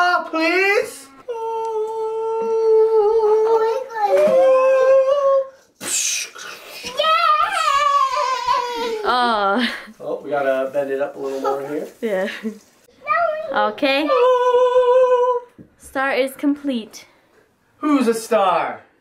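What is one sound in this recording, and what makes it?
A young man sings loudly and dramatically close by, holding long notes.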